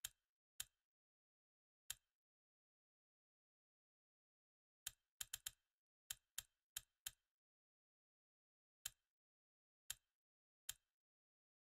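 Menu clicks tick quietly.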